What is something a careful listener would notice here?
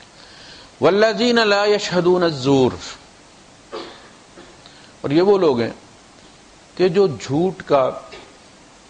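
A man chants in a melodic voice through a microphone.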